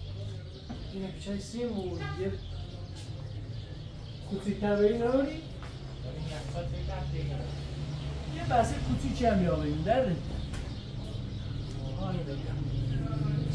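A young man talks close by with animation.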